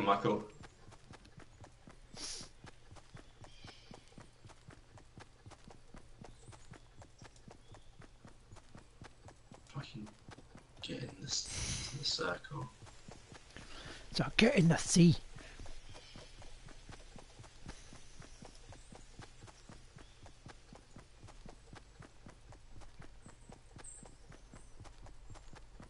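Footsteps patter steadily on grass.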